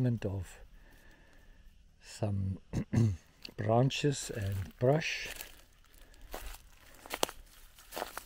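A dog's paws rustle over dry grass.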